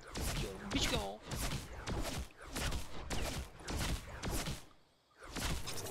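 A pickaxe strikes with sharp metallic hits.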